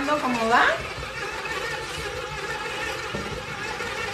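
A stand mixer whirs steadily as it beats dough.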